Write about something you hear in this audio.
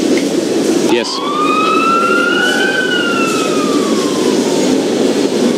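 An ambulance siren whoops once, rising and then falling.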